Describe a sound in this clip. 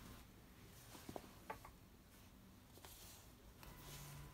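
Denim fabric rustles softly under a hand.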